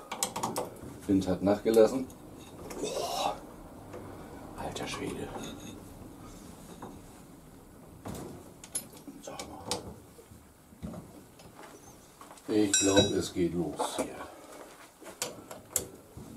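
Metal parts click and clink as a man works on them.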